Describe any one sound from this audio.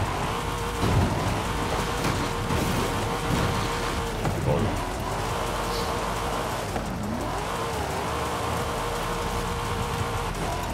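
Tyres crunch and skid over rough gravel.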